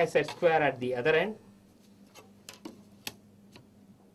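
Plastic rulers click and slide on paper.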